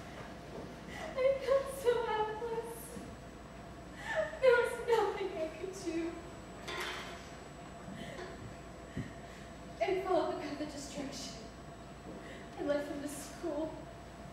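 A woman speaks with animation to a quiet room.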